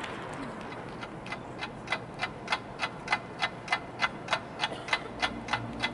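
Drumsticks click out a steady, even beat.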